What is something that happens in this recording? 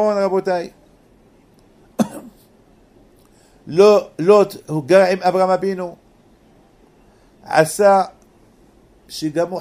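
An elderly man speaks slowly and calmly into a close microphone, with pauses.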